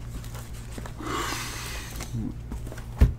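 A cardboard box rustles and slides.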